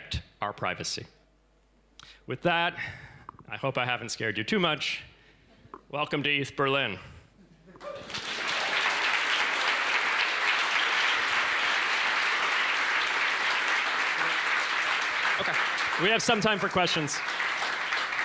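A young man speaks through a microphone.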